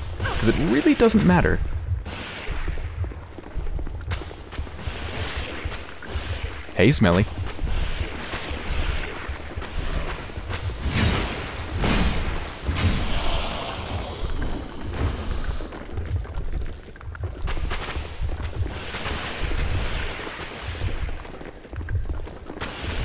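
Footsteps crunch on gravel as a warrior runs.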